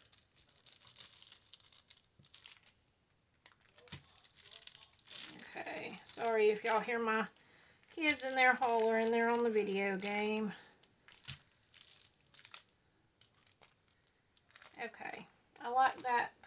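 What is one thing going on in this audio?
A plastic sheet crinkles and rustles under hands.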